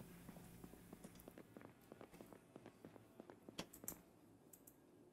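Footsteps tap steadily across a wooden floor.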